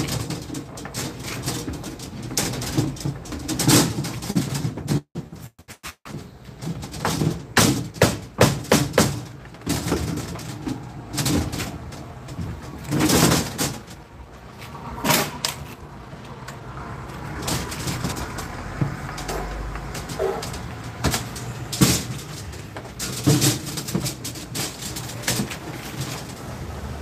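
Metal tubing clinks and rattles as it is handled.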